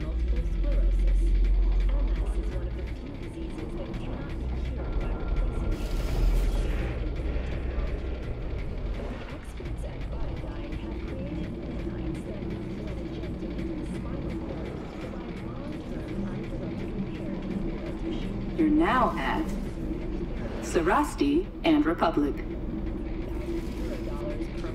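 A train rumbles steadily along its track.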